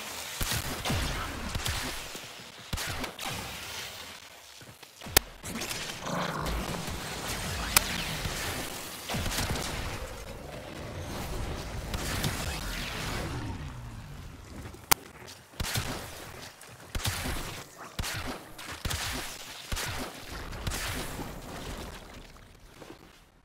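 Gunshots and energy blasts fire in quick bursts.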